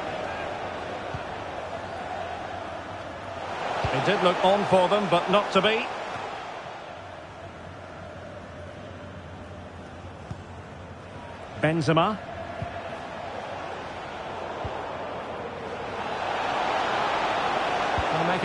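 A large stadium crowd murmurs and roars.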